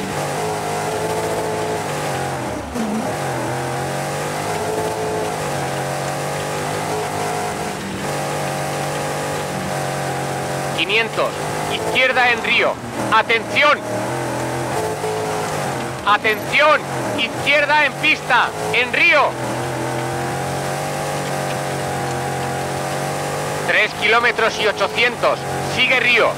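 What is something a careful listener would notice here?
A rally car engine roars steadily, shifting gears as it speeds along.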